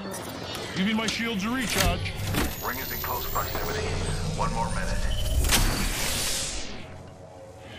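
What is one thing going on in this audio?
A device charges up with a rising electronic whir.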